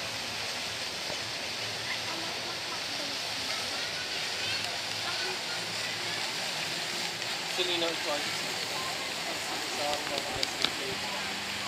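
A crowd murmurs far off outdoors.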